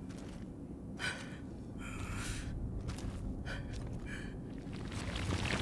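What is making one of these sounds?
Heavy footsteps clank on stone as an armoured warrior walks.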